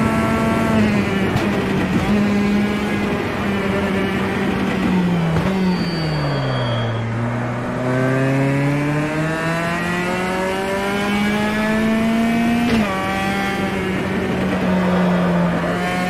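A four-cylinder touring car engine in a racing game roars through speakers, dropping in pitch as the car slows, then climbing again and shifting up as it accelerates.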